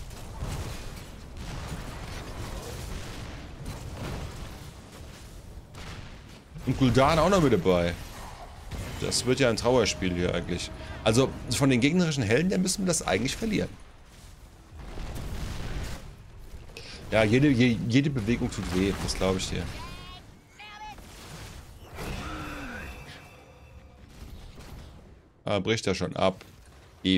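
Game sound effects of blasts and clashes play.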